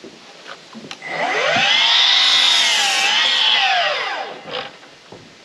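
A power saw whines as it cuts through wood.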